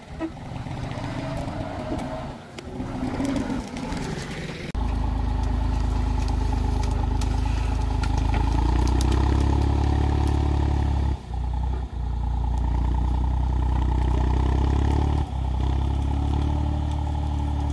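Metal harrow discs scrape and crunch through soil.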